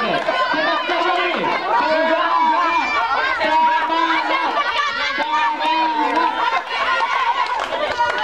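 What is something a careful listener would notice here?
A crowd of young people cheer and shout loudly outdoors.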